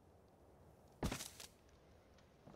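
A wooden wall piece is knocked away with a sharp crunch.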